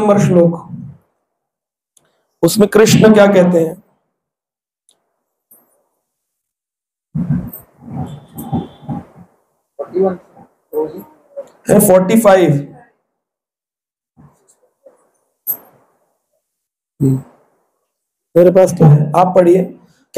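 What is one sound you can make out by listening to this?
A man chants slowly into a close microphone, with long pauses.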